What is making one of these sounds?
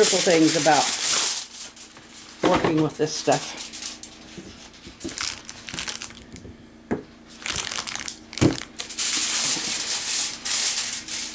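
A plastic packet crinkles and rustles close by.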